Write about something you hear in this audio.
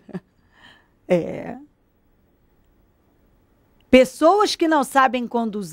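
A young woman speaks with animation into a microphone, close by.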